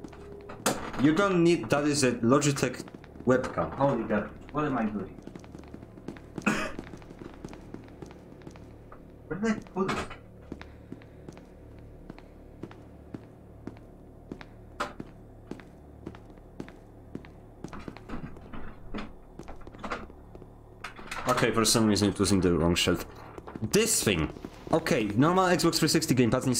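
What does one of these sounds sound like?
Footsteps tap quickly on a hard metal floor.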